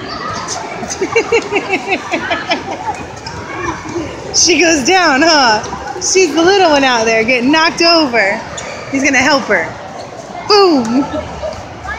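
Children shout and squeal excitedly nearby.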